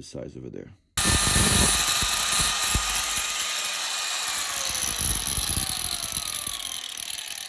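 An angle grinder motor whines loudly, then slowly winds down.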